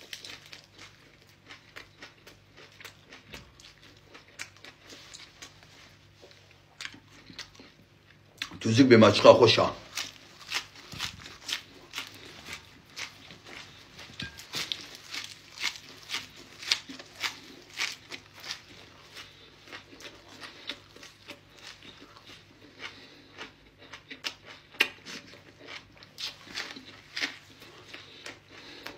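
A man chews crunchy leaves loudly close by.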